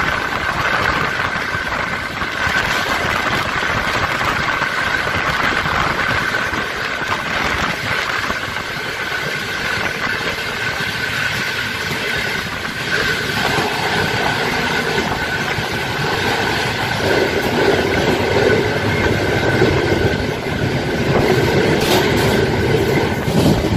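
Another train rushes past close by on the next track.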